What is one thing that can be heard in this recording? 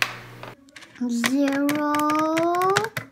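Metal beads click softly as a magnetic pen drags them along a board.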